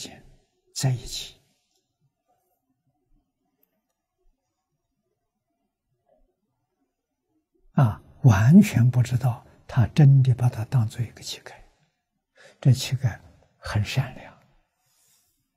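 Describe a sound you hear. An elderly man speaks calmly and warmly into a close microphone, with long pauses.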